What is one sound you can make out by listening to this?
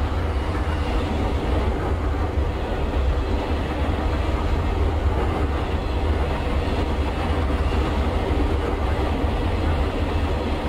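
A train rumbles steadily along the tracks close by.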